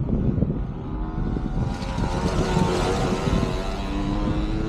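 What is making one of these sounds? A motorcycle engine drones nearby, its pitch shifting.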